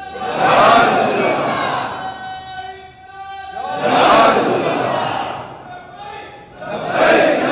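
A man preaches loudly through a loudspeaker in a large echoing hall.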